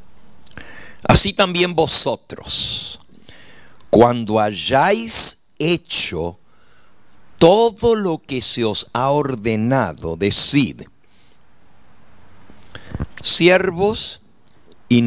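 An elderly man speaks with feeling into a microphone.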